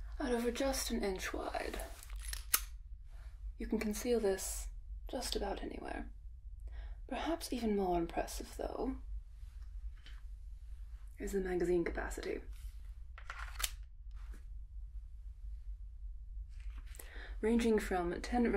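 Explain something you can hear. A young woman speaks to the listener in a clear, animated way, close to a microphone, with short pauses.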